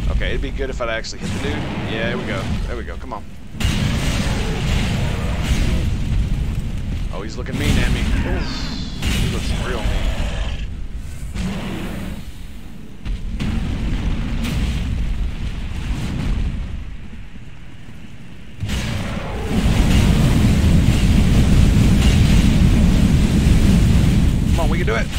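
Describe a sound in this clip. A huge creature growls and roars.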